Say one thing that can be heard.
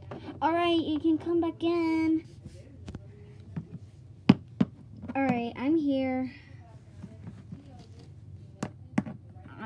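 Small plastic toys tap and knock on a tabletop.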